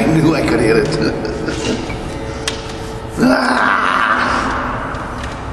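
A middle-aged man talks and laughs close to the microphone in a large echoing room.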